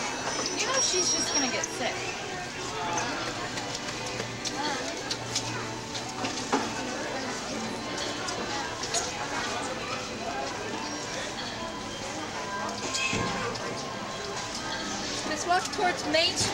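Footsteps splash through puddles on wet pavement.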